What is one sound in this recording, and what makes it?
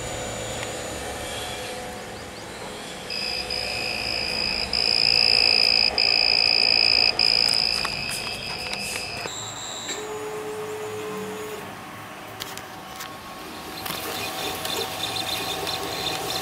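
A 3D printer's cooling fan whirs steadily.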